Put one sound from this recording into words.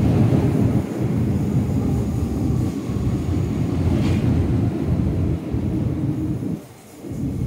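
A train rumbles past close by on the tracks.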